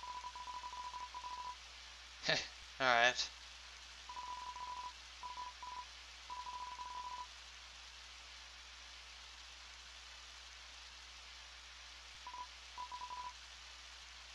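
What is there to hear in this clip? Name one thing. Short electronic beeps chirp rapidly in a steady stream, like typed game text.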